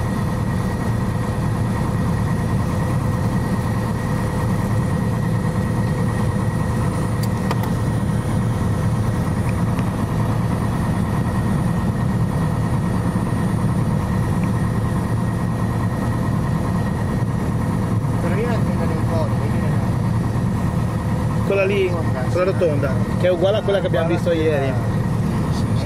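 A small plane's engine drones steadily from inside the cabin.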